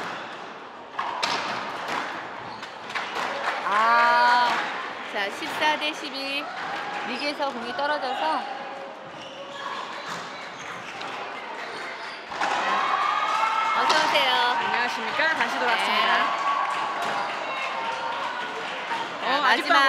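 Shoes squeak sharply on a wooden court floor.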